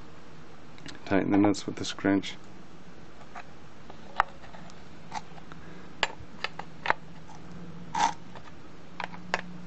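A metal socket wrench clicks against nuts.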